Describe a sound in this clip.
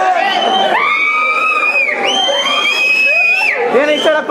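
A young man whistles through his fingers.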